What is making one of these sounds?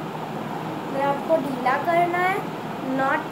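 A young girl speaks close by in a high voice.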